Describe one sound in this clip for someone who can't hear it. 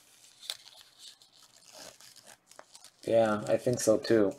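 A plastic wrapper crinkles as it is torn open.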